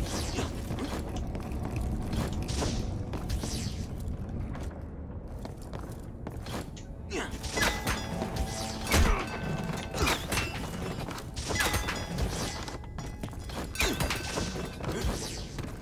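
Footsteps patter across wooden boards.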